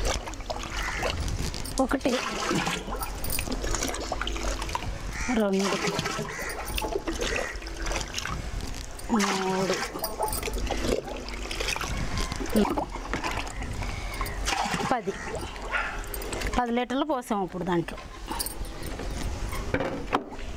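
Water sloshes as a woman scoops it from a barrel into a bucket.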